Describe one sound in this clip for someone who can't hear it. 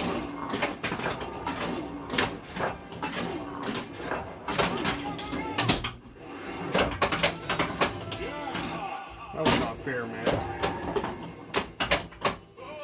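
A pinball clacks and bumps against flippers and bumpers.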